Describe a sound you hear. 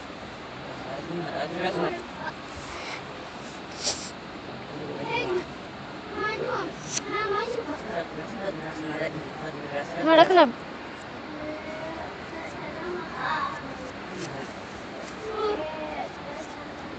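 Young boys talk and shout playfully nearby.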